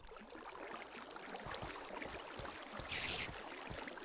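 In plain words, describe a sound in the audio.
Water splashes and trickles steadily.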